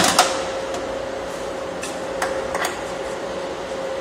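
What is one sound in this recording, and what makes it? A car's bonnet clunks as it is opened.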